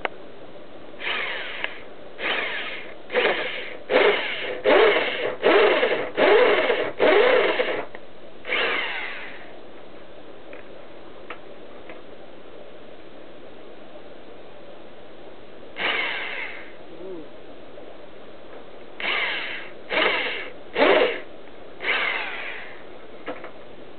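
An electric drill whirs in short bursts.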